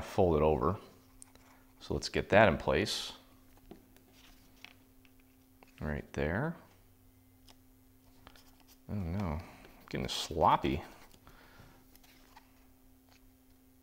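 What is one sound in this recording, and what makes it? Paper rustles softly under hands.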